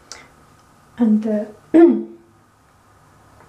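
A woman speaks briefly close by.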